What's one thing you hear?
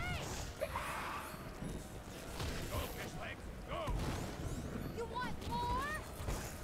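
Fiery magic blasts whoosh and thud in a fast fight.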